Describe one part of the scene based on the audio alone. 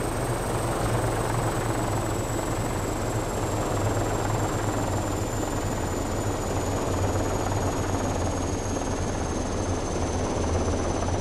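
A helicopter's rotor whirs with a steady, low engine drone.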